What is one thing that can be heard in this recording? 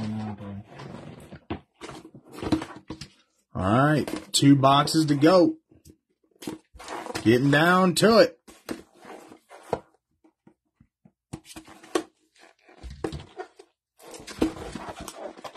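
A cardboard box rustles and scrapes as hands handle it.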